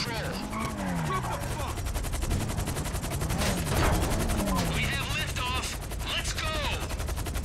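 A car engine hums steadily as the car speeds along.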